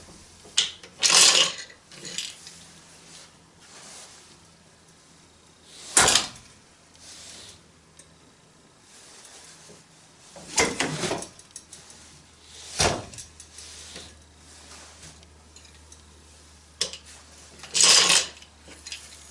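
A wooden shuttle slides and rattles across the loom.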